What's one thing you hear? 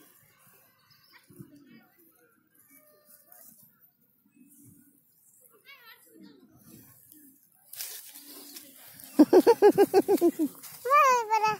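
A hand brushes through low plants and dry grass, rustling the leaves.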